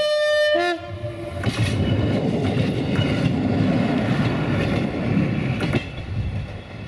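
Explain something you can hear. A train rumbles past close by with wheels clattering on the rails.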